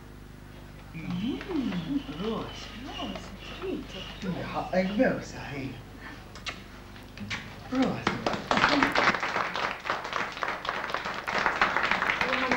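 A young man laughs and talks.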